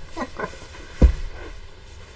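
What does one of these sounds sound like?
A fabric bolt thumps down onto a table.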